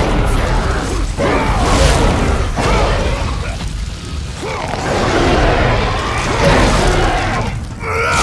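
Heavy blows thud and smash.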